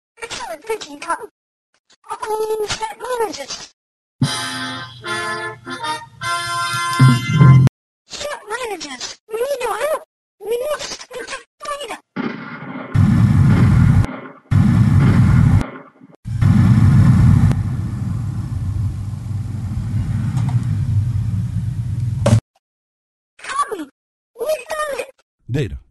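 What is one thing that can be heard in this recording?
A man speaks in a high, gravelly puppet voice with animation.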